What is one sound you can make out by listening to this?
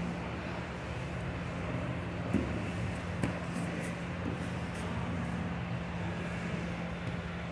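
Bare feet shuffle and slap on a mat.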